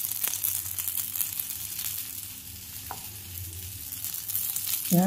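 Batter sizzles softly on a hot pan.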